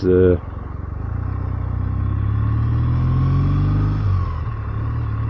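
A motorcycle engine revs up as it speeds up.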